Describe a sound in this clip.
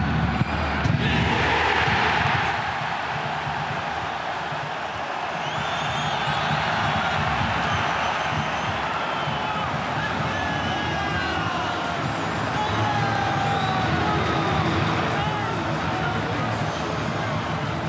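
A stadium crowd erupts in a loud roaring cheer.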